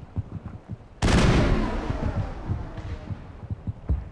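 A loud blast bursts and rumbles away.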